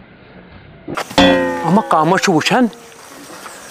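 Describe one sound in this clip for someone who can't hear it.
A young man speaks loudly with animation close by.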